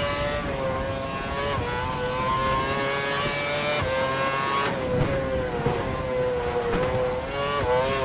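A racing car engine screams at high revs, shifting gears up and down.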